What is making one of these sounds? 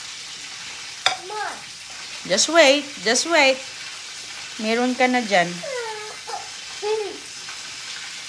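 A young girl talks and exclaims excitedly, close by.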